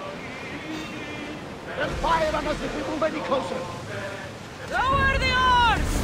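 A seagull cries overhead.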